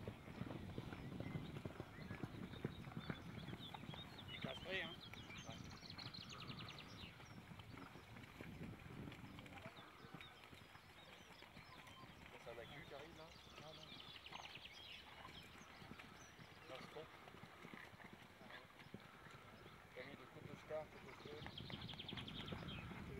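A horse's hooves thud on grass as it canters.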